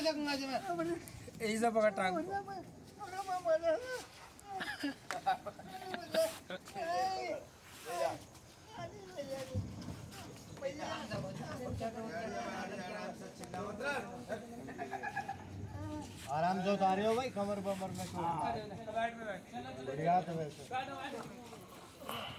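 Several men talk and call out to each other close by, excitedly.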